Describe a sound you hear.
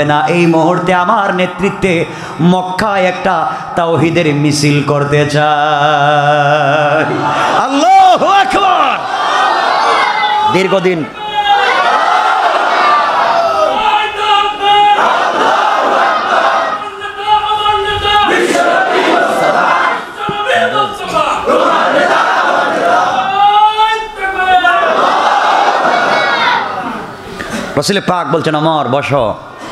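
A man preaches passionately through a microphone in a reverberant hall, his voice rising and falling.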